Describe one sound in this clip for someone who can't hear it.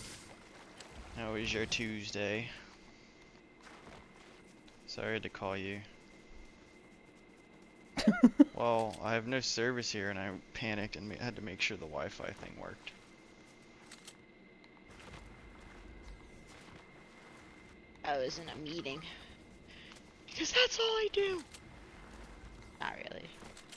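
Footsteps patter quickly over grass and dirt.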